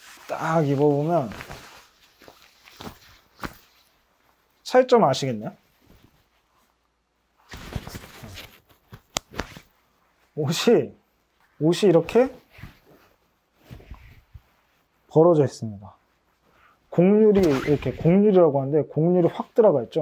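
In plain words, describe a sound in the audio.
A young man talks calmly and close by, in short phrases with pauses.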